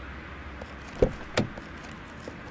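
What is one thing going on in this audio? A metal tailgate clanks open.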